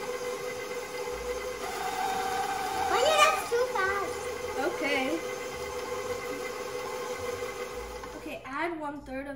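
An electric stand mixer hums steadily.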